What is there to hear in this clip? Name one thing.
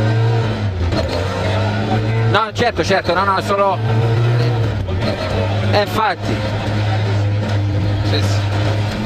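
A four-cylinder rally car engine roars at full throttle inside the cabin.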